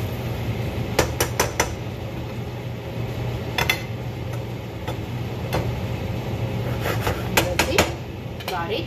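A utensil clinks against a pan.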